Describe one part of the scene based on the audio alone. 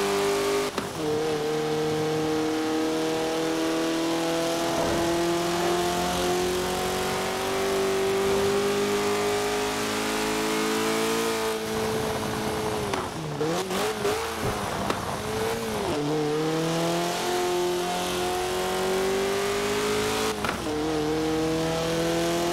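A sports car engine roars, rising in pitch as it speeds up and shifting gears.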